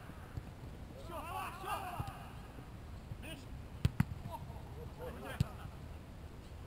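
Men call out in the distance outdoors.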